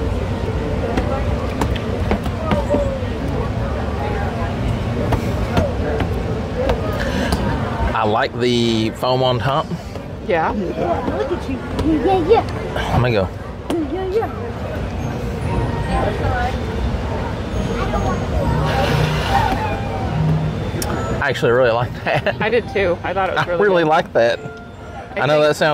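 A crowd chatters outdoors in the background.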